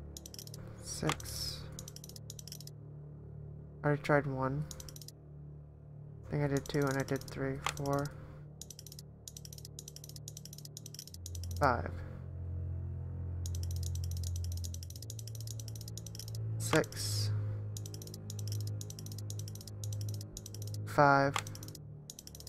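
A dial clicks as it turns.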